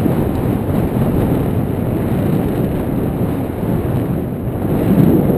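Wind rushes loudly and steadily past a microphone, as if high in open air.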